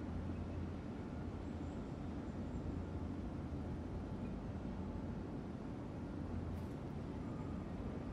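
A ceiling fan whirs with a steady low hum.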